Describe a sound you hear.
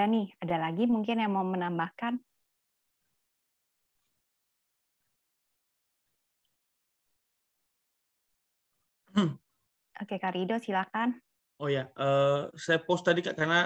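A woman speaks through an online call, with pauses.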